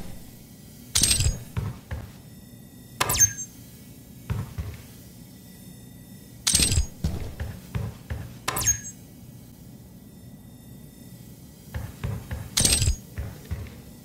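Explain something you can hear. A game item is picked up with a sharp, bright chime.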